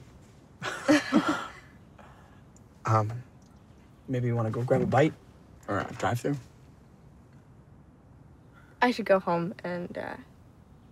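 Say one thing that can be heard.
A young woman talks calmly up close.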